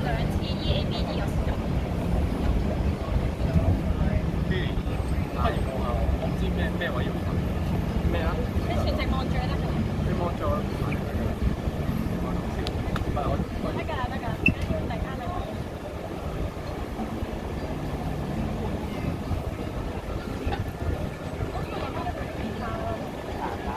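An acoustic guitar strums steadily through a loudspeaker.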